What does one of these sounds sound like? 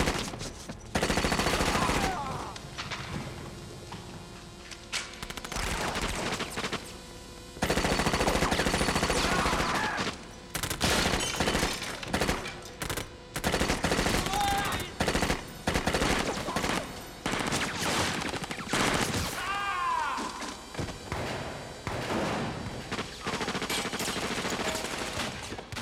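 Machine guns fire in rapid bursts, echoing through a large hall.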